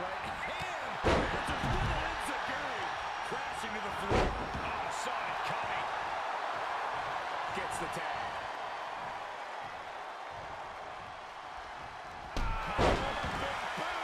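Heavy thuds of bodies hitting a wrestling ring mat.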